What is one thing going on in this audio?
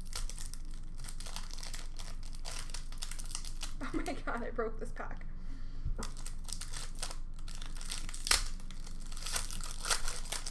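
Foil trading card packs crinkle as hands handle them.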